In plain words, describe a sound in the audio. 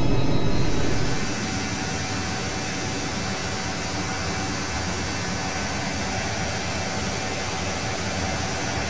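Aircraft engines hiss and whine more quietly, as if heard from outside the plane.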